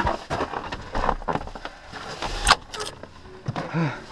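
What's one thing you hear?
A door creaks open.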